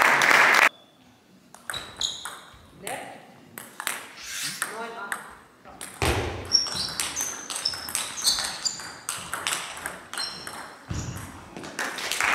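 A ping-pong ball clicks back and forth on paddles and a table in a large echoing hall.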